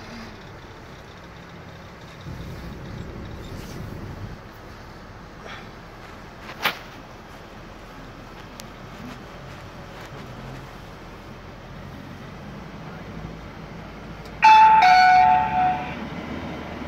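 A vehicle's engine hums low and steady from inside the cabin.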